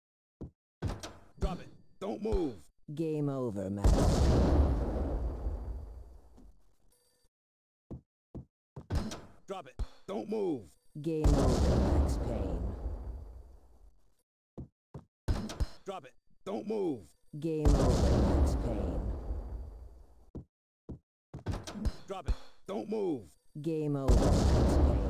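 Guns fire in quick shots and short bursts indoors.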